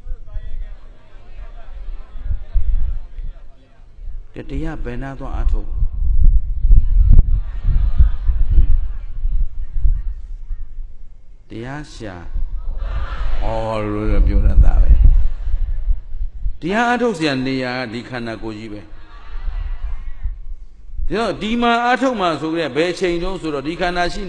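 A middle-aged man speaks calmly and expressively into a microphone, heard over a loudspeaker.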